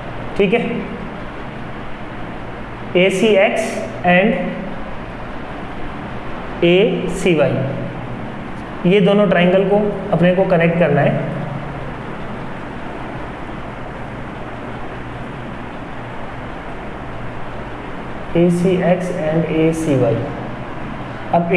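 A man explains calmly, in short bursts with pauses.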